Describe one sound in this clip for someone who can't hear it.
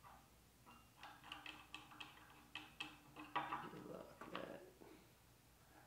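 A metal point scratches lightly across metal.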